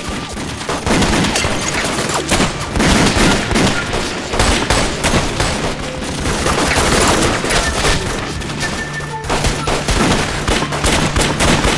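Pistols fire loud, sharp gunshots.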